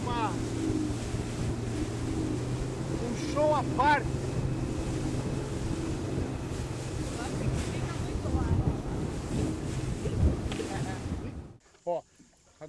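Water splashes and hisses against a speeding boat.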